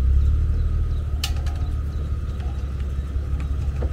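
A boat trailer's winch clicks as it is worked.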